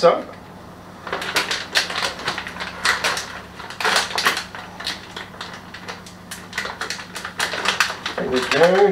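Kitchen utensils clink and clatter on a counter.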